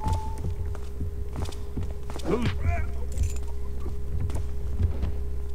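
Footsteps thud steadily on a stone floor.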